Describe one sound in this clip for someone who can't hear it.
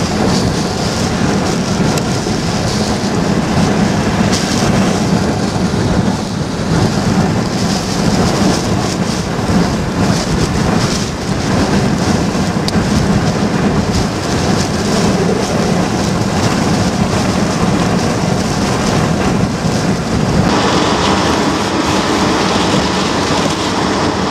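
Wind-driven rain pounds on a car windshield.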